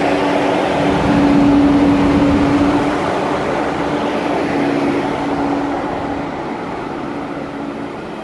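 A high-speed train rolls slowly along the track with a steady rumble and hum.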